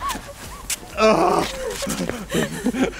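A young woman laughs close by.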